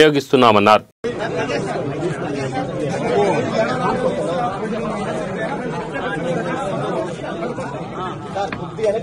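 A crowd of men murmurs and chatters all around.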